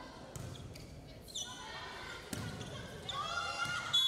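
A volleyball is struck with a smack.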